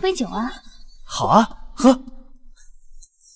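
A young man speaks with animation.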